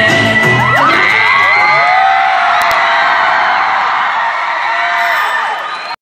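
A large crowd of children and adults screams and cheers loudly in a big echoing hall.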